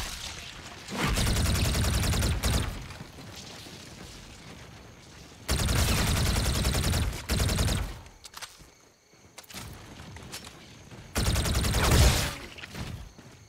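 A rapid-fire gun shoots in quick, loud bursts.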